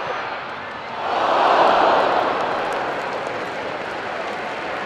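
A large football crowd roars in a cheer after a goal.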